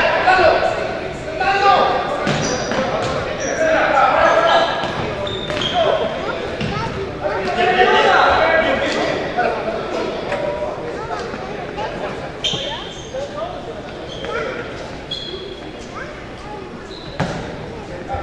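Spectators and players shout and call out, echoing in a large gym.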